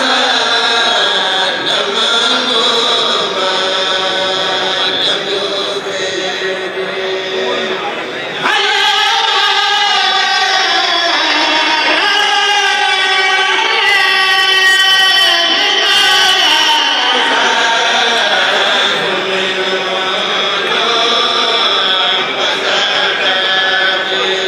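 A group of men chant together through microphones in an echoing hall.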